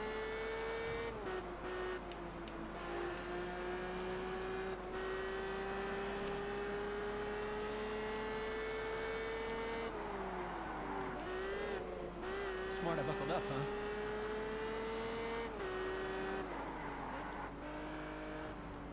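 A car engine hums steadily, its pitch climbing and dropping as gears shift.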